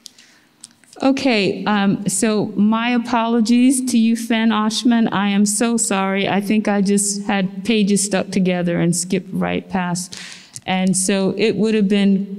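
A woman speaks calmly into a microphone, heard through a loudspeaker.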